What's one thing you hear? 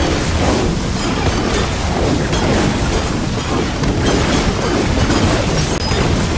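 Blades slash and clang rapidly against a large creature.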